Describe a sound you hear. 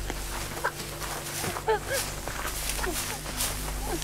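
Dry leaves and twigs crunch as a woman crawls over the ground.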